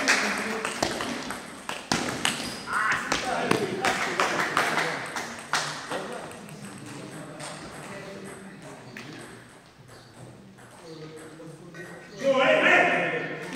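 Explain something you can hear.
Ping-pong balls click sharply off paddles and a table in an echoing hall.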